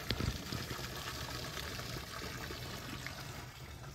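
Water laps gently against the side of a boat.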